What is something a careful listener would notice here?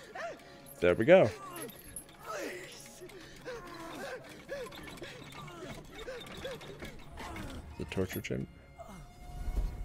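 A man cries out and pleads in fear.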